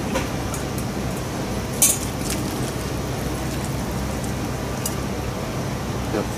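Liquid pours and trickles through a cloth into a pot.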